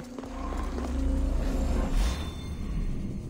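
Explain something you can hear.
A bright magical shimmer swells and fades.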